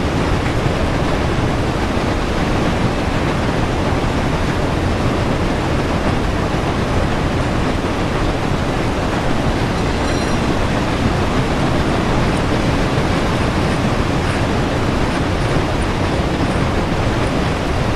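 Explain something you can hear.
A steam locomotive rumbles and roars steadily as it runs along the track.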